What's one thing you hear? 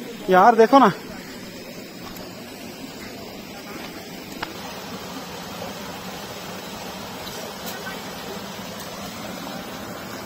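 Water rushes and splashes over rocks in a stream.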